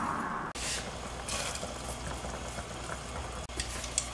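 A soup simmers gently in a pot.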